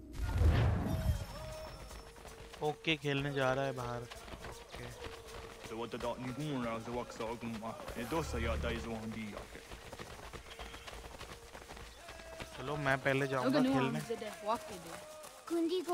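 Footsteps run quickly over dirt.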